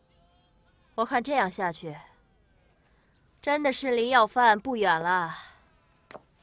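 A young woman speaks calmly at close range.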